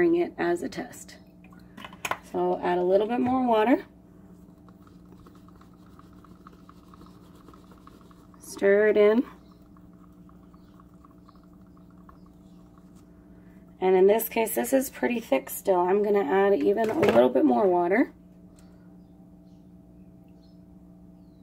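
Water pours from a plastic bottle into a cup.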